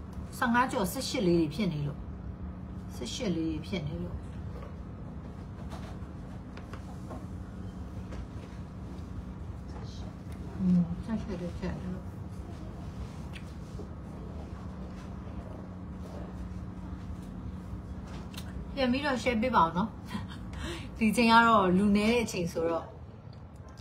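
A young woman speaks close to a microphone, with pauses.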